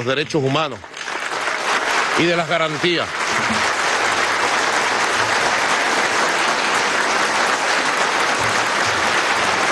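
A large crowd applauds.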